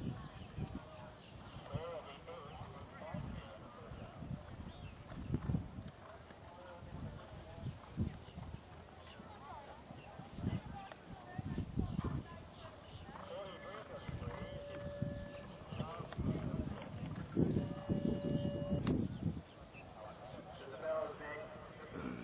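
Horse hooves thud on soft sand at a canter.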